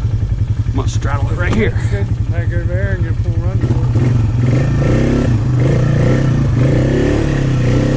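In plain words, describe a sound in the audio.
A quad bike engine rumbles and chugs steadily.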